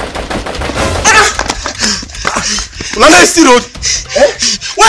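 A young man laughs loudly and excitedly close by.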